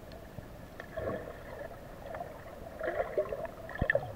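Air bubbles gurgle and swirl underwater close by.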